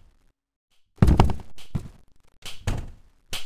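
A door slams shut loudly.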